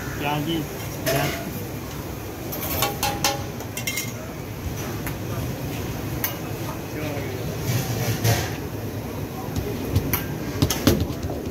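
Hands pat and slap soft dough.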